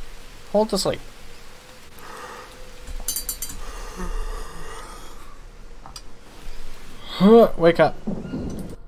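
A young man speaks casually and close into a microphone.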